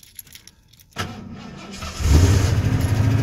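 A car engine cranks and starts, then idles loudly.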